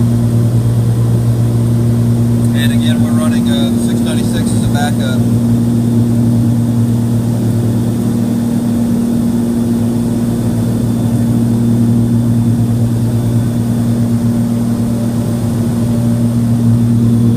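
An aircraft engine drones steadily and loudly.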